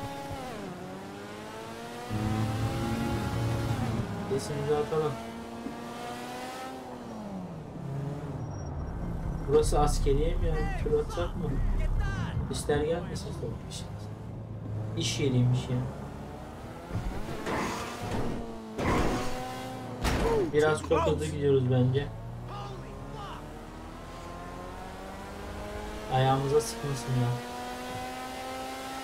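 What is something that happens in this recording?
A car engine hums and revs up and down while driving.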